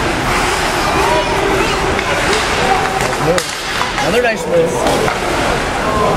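Hockey sticks clack against the ice and the puck.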